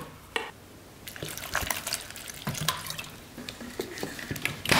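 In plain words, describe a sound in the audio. Water pours into a metal container.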